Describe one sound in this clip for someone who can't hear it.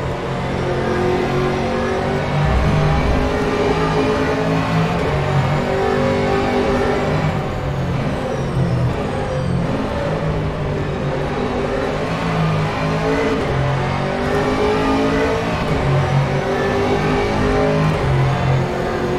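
A race car engine roars loudly, rising and falling in pitch as the car accelerates and shifts gears.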